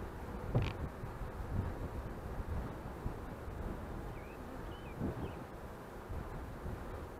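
A swarm of bees buzzes close by.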